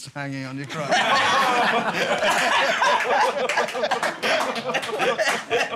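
A group of men laugh and shout together.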